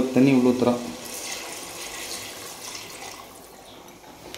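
Water pours into a pot.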